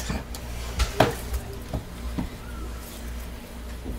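A plastic mould knocks down onto a hard surface.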